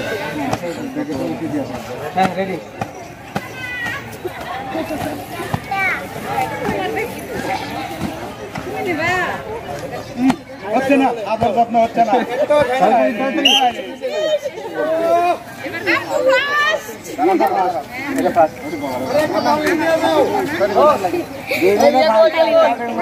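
A crowd of men and women chatters and calls out nearby, outdoors.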